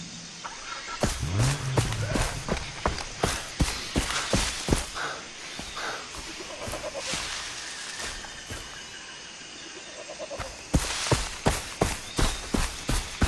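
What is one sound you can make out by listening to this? Footsteps rustle through grass at a walking pace.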